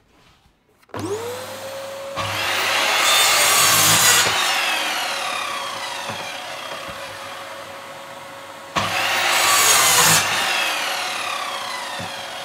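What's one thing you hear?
A vacuum cleaner switches on and runs with a steady whine.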